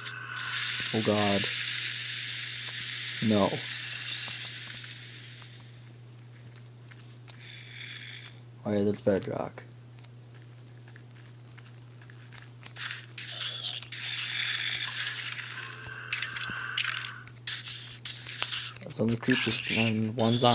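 A monster groans low several times.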